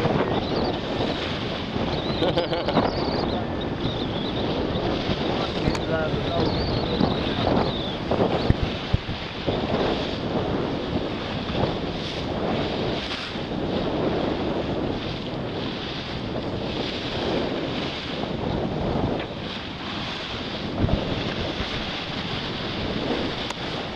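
Dolphins splash as they leap from the water.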